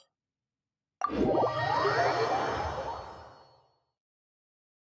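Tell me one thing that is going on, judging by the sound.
A shimmering whoosh swells and fades away.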